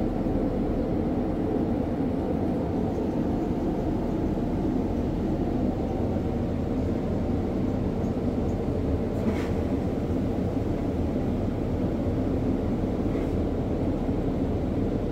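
A steady low roar of aircraft engines fills the cabin.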